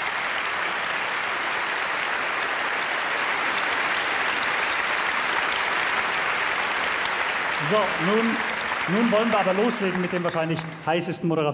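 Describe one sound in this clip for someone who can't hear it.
A large audience applauds in a big hall.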